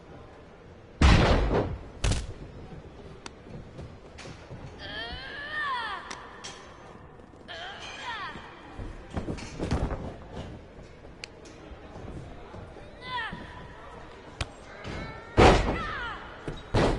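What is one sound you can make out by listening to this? Bodies slam heavily onto a wrestling ring mat with loud thuds.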